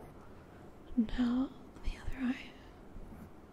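A young woman speaks aloud briefly close to a microphone.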